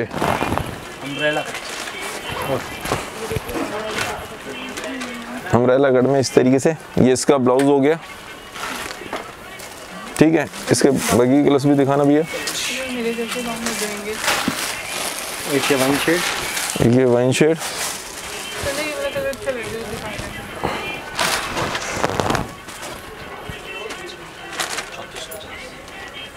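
Heavy fabric rustles as it is unfolded and held up.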